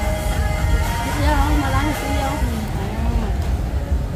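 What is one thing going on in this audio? A young woman slurps noodles close by.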